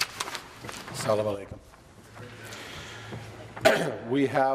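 A man calls out firmly into a microphone in a large hall.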